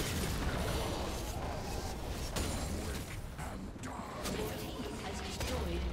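A tower fires blasts at attacking units.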